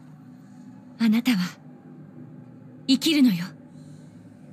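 A young woman speaks briefly in short, quiet phrases.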